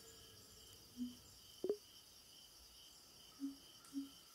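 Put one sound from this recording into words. Soft electronic game blips sound now and then.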